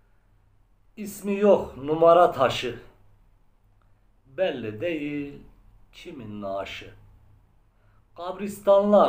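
A middle-aged man sings or chants slowly in a close, plain voice, with pauses between phrases.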